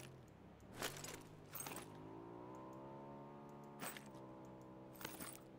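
Short rustling clicks sound as game items are picked up.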